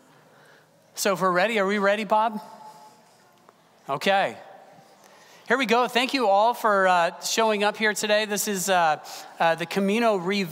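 A middle-aged man speaks calmly to an audience in a large room.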